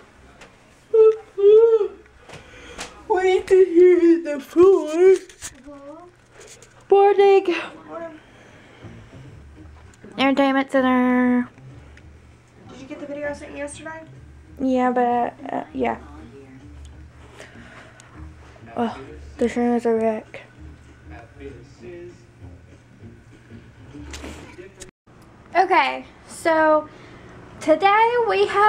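A young woman talks excitedly and playfully close by.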